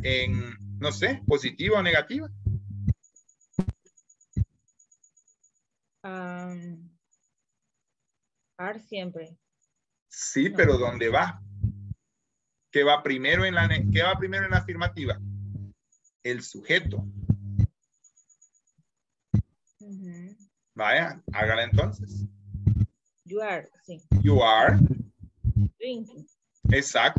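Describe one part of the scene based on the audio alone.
A man speaks with animation through an online call.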